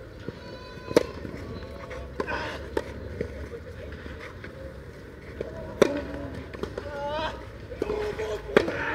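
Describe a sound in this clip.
A tennis ball is struck with a racket and bounces on a court.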